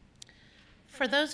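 A woman begins speaking into a microphone.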